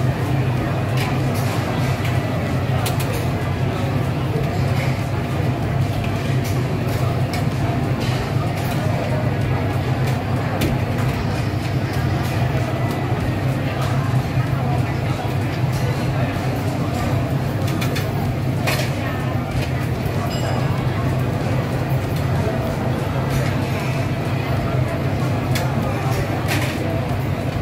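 Plates and utensils clink now and then.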